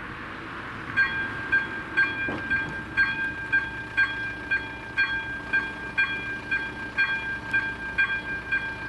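A level crossing bell starts ringing in a fast, steady rhythm.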